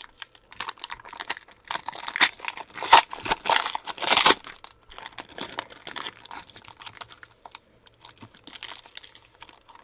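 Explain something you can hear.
Foil wrapping crinkles and tears as hands open a pack.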